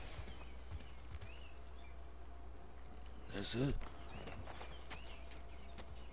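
Footsteps crunch on a rubble-strewn concrete floor.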